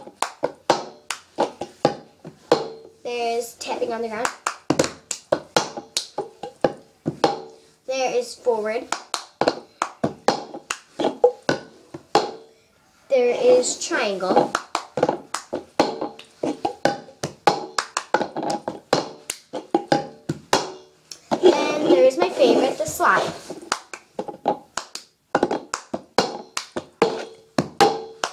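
A plastic cup is tapped, slapped and knocked on a floor in a quick rhythm.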